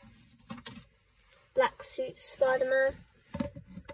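Plastic toy figures knock and rattle as hands pick one up.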